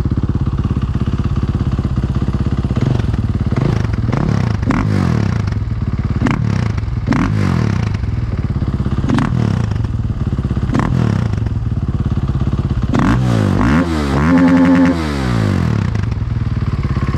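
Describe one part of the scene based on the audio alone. A motorcycle engine idles close by with a loud, throbbing exhaust.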